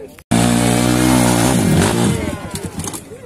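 A dirt bike engine revs loudly on a steep climb.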